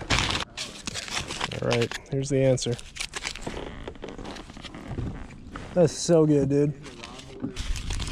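Aluminium foil crinkles and rustles in hands.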